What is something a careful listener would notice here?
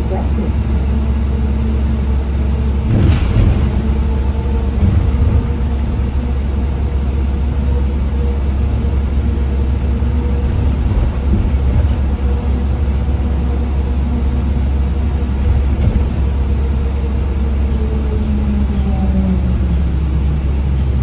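A bus engine hums and drones steadily from inside.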